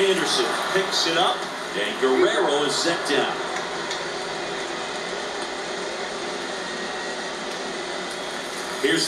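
A stadium crowd murmurs steadily through a television speaker.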